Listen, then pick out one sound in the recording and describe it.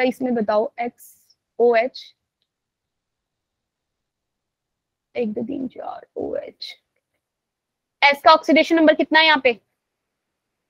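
A young woman explains calmly, heard through an online call.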